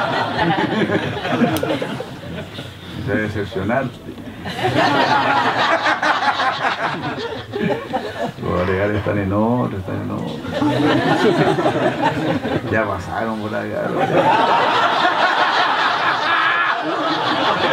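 An elderly man laughs into a microphone.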